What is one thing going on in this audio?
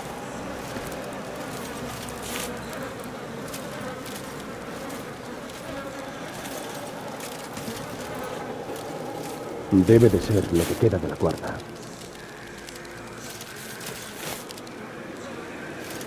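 Footsteps rustle through leafy undergrowth.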